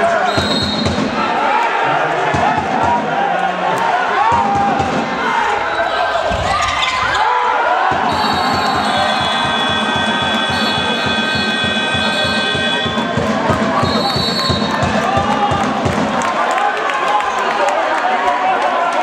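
A crowd of spectators shouts and cheers throughout a large echoing hall.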